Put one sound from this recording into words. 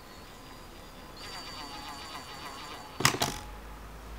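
A cordless drill whirs in a short burst.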